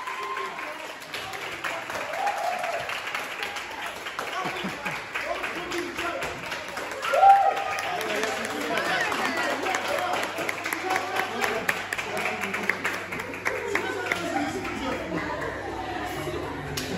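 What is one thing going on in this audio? A crowd of men and women talk and cheer excitedly.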